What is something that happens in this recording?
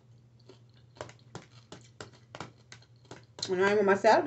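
A fork clicks against a plastic food container.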